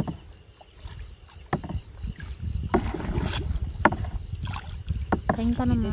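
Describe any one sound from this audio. A wooden paddle dips and strokes through water.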